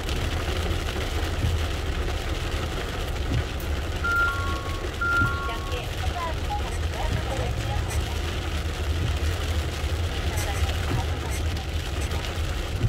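Rain patters on the windshield.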